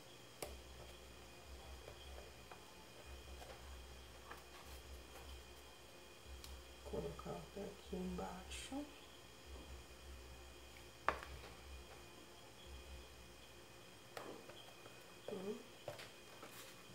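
Hands shuffle and press soft craft paper on a board.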